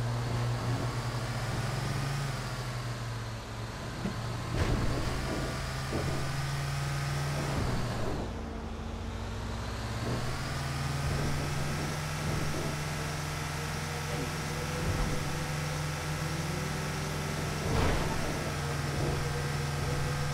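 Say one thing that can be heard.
A bus engine hums steadily and rises and falls as the bus drives along.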